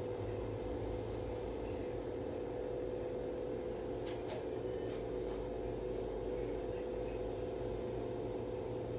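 A bus engine hums steadily.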